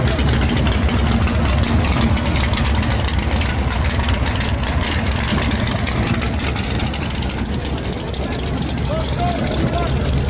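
A race car engine idles with a loud, rough, crackling rumble close by.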